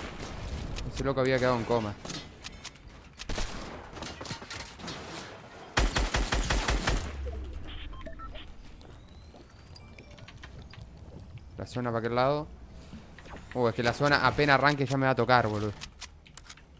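A young man speaks with animation through a headset microphone.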